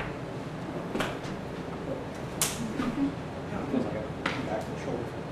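Hands slap against arms in quick impacts.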